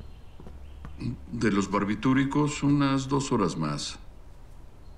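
A man speaks loudly and firmly in a large echoing room.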